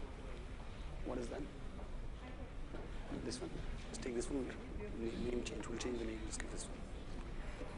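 A man speaks into a microphone over a loudspeaker in a large room.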